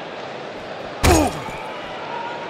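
A heavy body slams onto a car roof with a loud crash.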